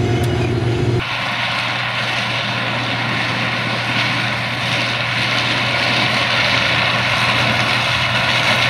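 A combine harvester rumbles and clatters as it cuts dry corn stalks outdoors.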